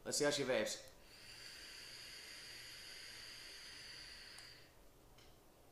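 An electronic cigarette crackles and hisses as a man draws on it.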